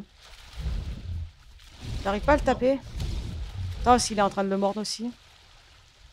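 Water sloshes and splashes as a large animal swims through it.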